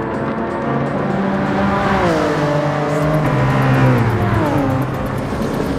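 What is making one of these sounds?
Racing car engines roar loudly, their pitch dropping as the cars shift gears and slow for a bend.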